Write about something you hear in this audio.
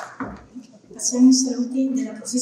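A woman speaks through a microphone and loudspeakers in a large hall.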